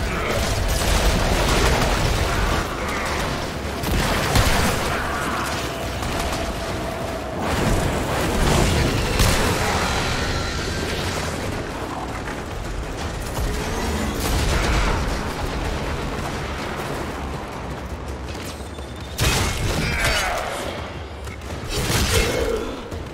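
Gunfire and energy blasts crackle throughout a fast fight.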